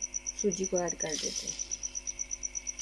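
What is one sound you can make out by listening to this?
Sugar pours into a metal pan with a soft rush.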